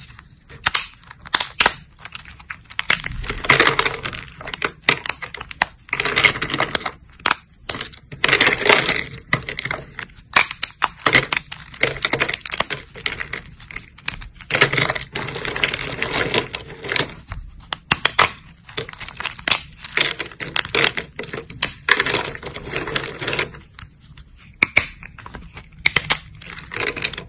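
Thin plates of dry soap snap and crunch between fingers.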